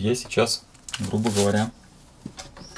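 A plastic mailing bag crinkles under a hand.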